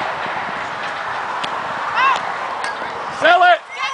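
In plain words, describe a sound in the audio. A bat strikes a softball with a sharp crack.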